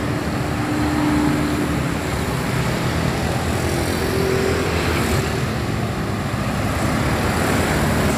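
Cars and a bus rumble along a busy road.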